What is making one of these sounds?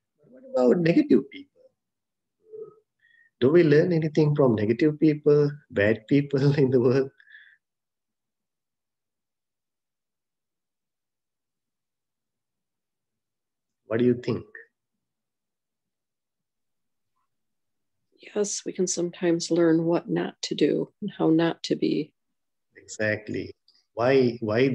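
A man speaks calmly and slowly into a nearby microphone, with long pauses.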